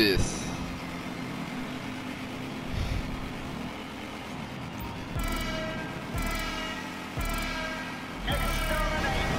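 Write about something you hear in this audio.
Motorcycle engines idle and rumble low.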